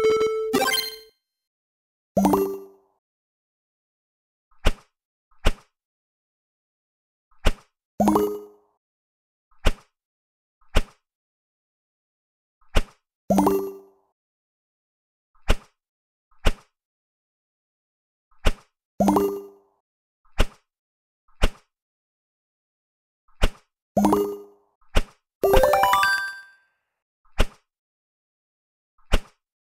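Short electronic game sound effects pop as tiles flip over.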